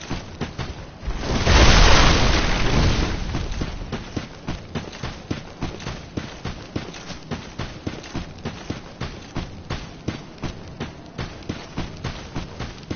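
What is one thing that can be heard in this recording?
Heavy armored footsteps run steadily over hard ground.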